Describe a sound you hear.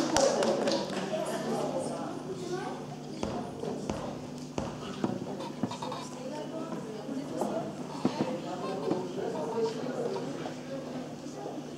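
Children chatter nearby.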